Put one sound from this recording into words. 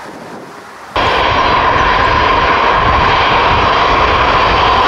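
Large jet engines whine loudly nearby.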